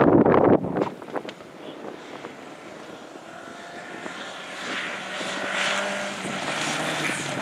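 A rally car engine roars as the car speeds closer.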